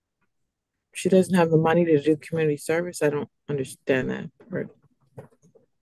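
A second woman speaks calmly and evenly over an online call.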